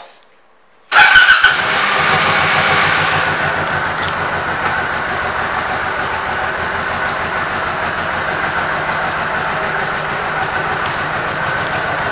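A motorcycle engine idles with a steady, throbbing rumble.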